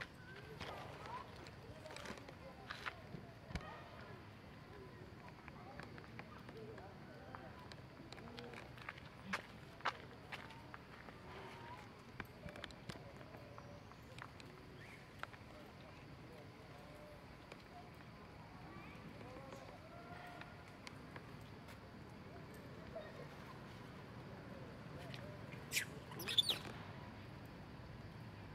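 Small monkeys patter and rustle over dry leaves and gravel.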